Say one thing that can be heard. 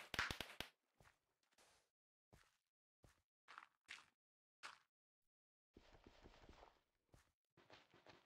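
Footsteps crunch on grass and dirt.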